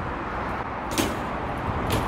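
A bike lands with a sharp thud.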